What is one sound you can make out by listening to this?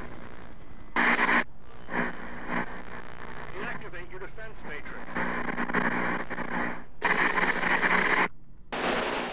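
Loud static hisses in short bursts.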